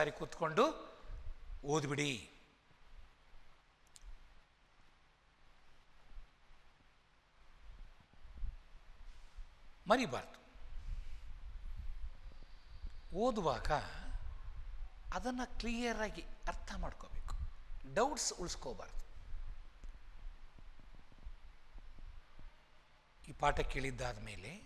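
An elderly man speaks calmly into a clip-on microphone, in short bursts with pauses.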